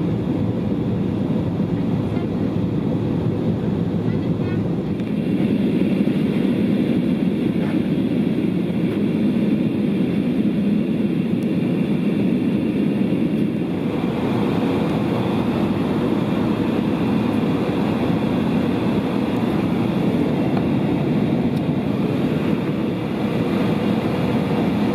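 An aircraft cabin hums with a steady, low engine roar.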